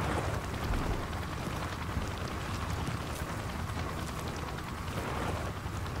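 Clothing rustles and scrapes over snowy ground as someone crawls.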